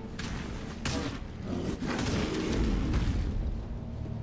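Heavy blows and crashes ring out in a fight.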